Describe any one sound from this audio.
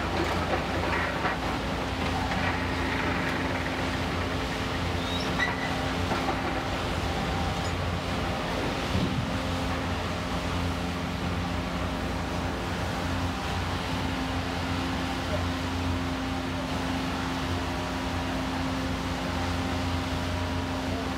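Concrete and metal debris crunch and clatter as a demolition machine tears at a building.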